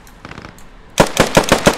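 A rifle fires rapid shots close by.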